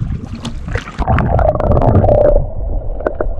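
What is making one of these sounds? Muffled underwater sounds gurgle and bubble.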